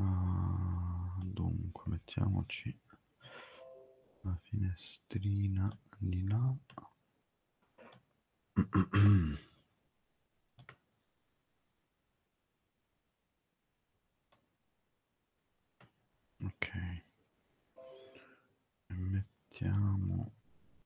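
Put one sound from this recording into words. A man speaks calmly through a headset microphone over an online call, with pauses.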